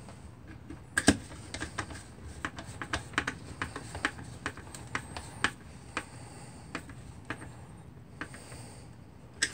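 Fingers tap and scrape on a metal plate.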